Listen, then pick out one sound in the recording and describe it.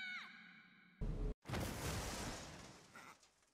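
A heavy thud and crash of a fall.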